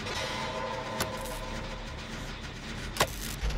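A generator engine rattles and hums.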